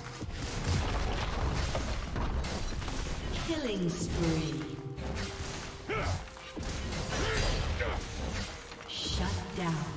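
Magic blasts and sword strikes clash in a fast fight.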